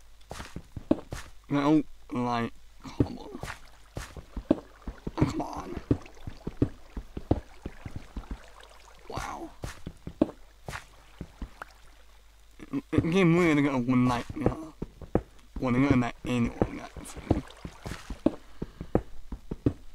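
A pickaxe chips at stone with quick, repeated knocks.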